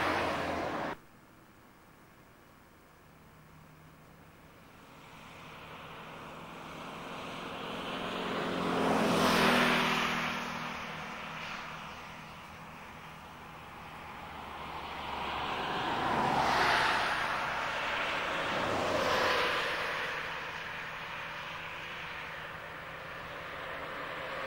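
Wind blows in gusts outdoors, swelling and easing.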